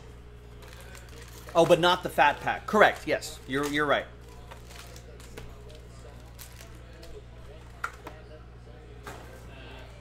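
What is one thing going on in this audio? Hands slide foil card packs out of a cardboard box.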